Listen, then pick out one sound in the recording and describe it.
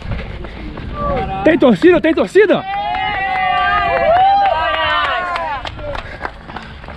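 A crowd of spectators cheers and whoops loudly.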